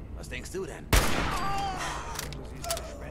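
A rifle fires a single loud shot that echoes in a large hall.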